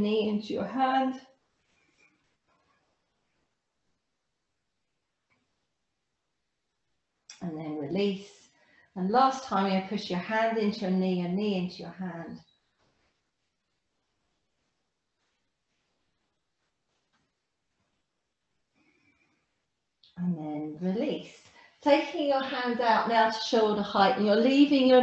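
A woman speaks calmly and clearly into a nearby microphone, giving instructions with pauses.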